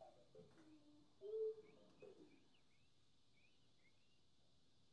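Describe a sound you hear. A saxophone plays soft, high notes.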